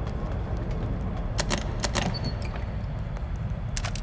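A metal case clicks open.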